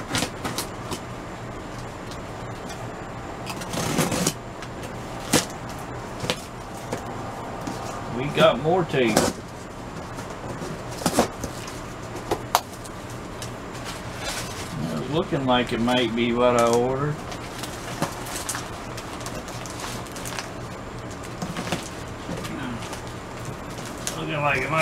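Cardboard and plastic wrapping rustle and crinkle as a box is unpacked.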